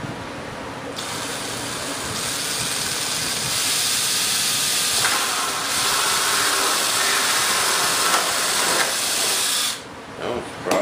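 A cordless drill whirs as it bores into wood.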